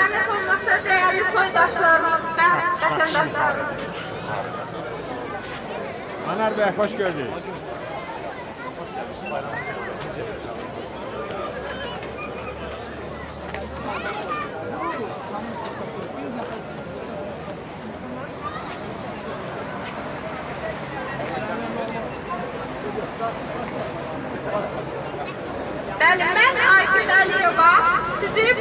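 A woman sings loudly through a loudspeaker.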